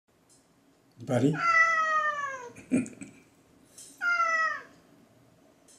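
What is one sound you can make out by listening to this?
A cat meows loudly with long, falling cries.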